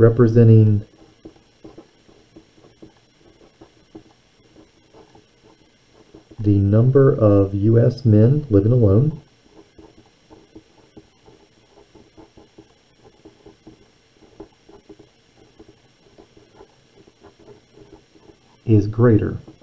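A felt pen scratches softly on paper.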